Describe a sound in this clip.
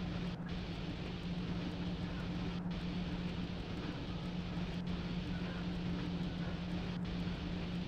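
A locomotive motor hums steadily.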